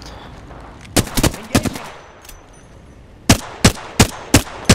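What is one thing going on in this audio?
Rapid gunshots fire in short bursts.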